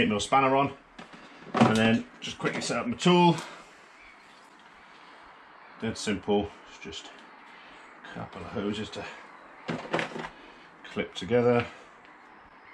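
A middle-aged man talks calmly and closely, in bursts with pauses.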